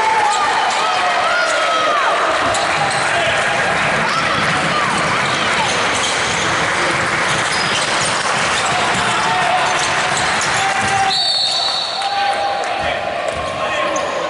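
A crowd murmurs and cheers in an echoing gym.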